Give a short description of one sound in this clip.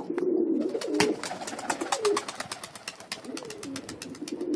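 A pigeon's wings flap as it takes off.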